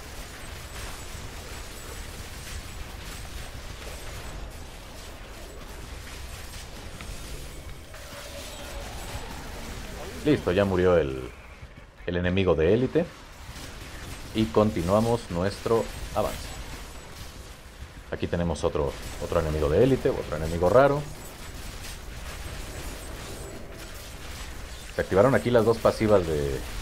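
Magic blasts and impacts crackle and thud in a hectic battle.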